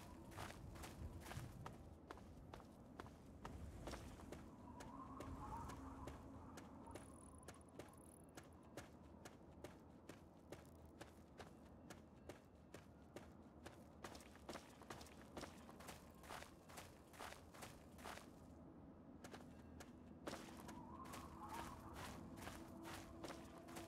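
Footsteps crunch steadily over rough, stony ground.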